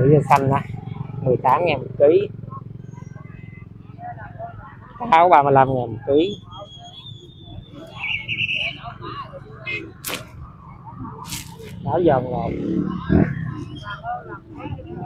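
A busy outdoor market murmurs with distant chatter.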